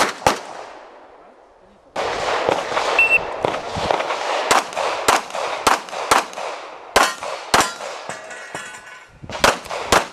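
Pistol shots ring out sharply outdoors, one after another.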